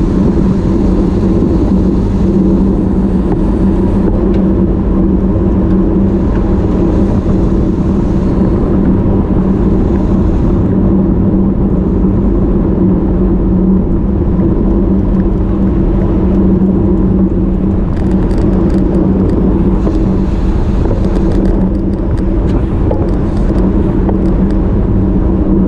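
Bicycle tyres hum on smooth tarmac.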